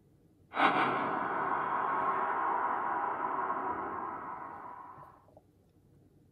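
A loud, eerie rushing sound bursts from a tablet's speaker and slowly fades away.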